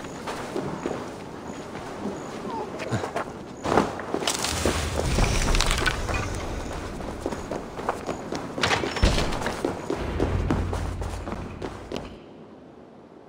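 Footsteps crunch on a muddy path.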